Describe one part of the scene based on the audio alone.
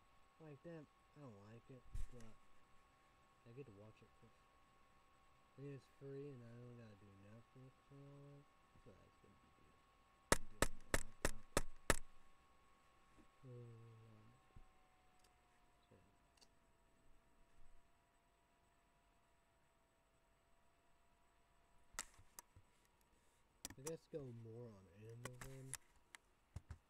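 A young man speaks calmly and close by, in short bursts.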